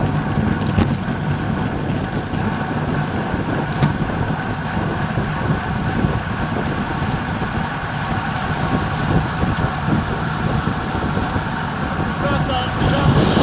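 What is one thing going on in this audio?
Bicycle tyres hum on asphalt.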